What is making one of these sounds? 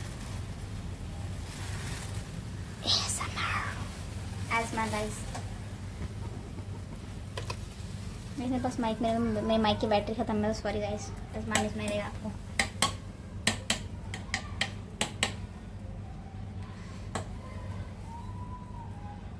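Water boils and bubbles steadily in a pot.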